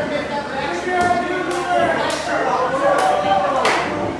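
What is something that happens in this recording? Wrestlers' bodies thud heavily on a ring mat.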